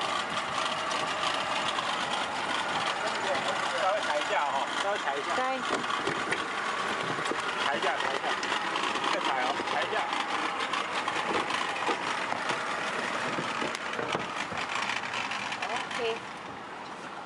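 Water laps and splashes against pedal boats.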